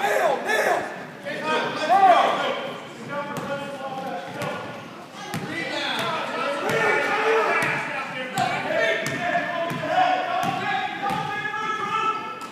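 A crowd of spectators chatters and calls out throughout.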